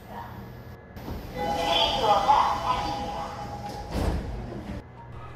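Sliding doors close with a thud.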